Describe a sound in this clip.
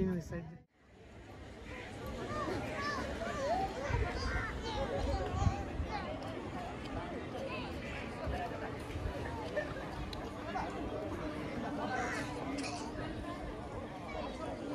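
Water laps gently against small boats.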